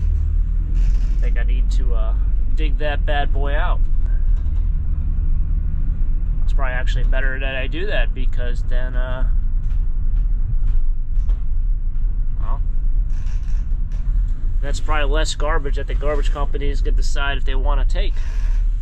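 A man talks casually and close by.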